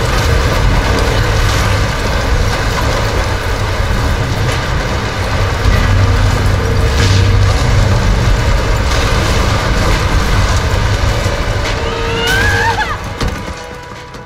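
Heavy wooden beams creak and crash as a structure collapses.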